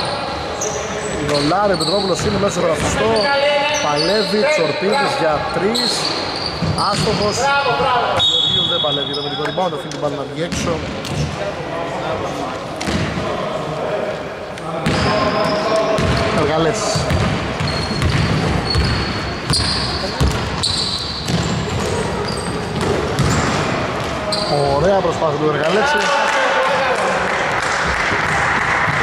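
Men shout and call out during play in an echoing hall.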